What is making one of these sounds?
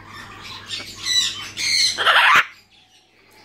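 A parrot squawks loudly and shrilly close by.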